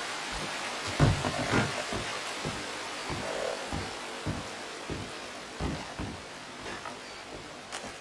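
Boots thud on a wooden floor.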